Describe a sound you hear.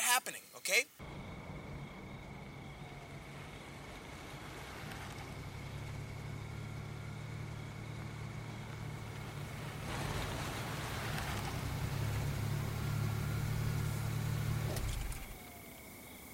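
A car engine hums as a car drives slowly past.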